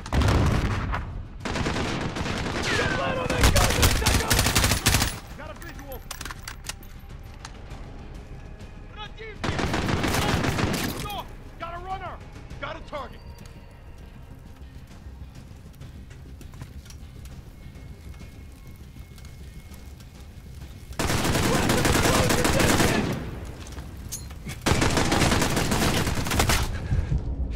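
Automatic rifles fire in loud, rapid bursts.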